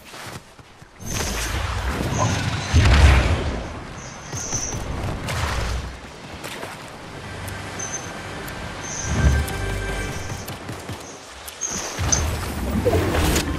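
A rushing wind roars during a fast glide through the air.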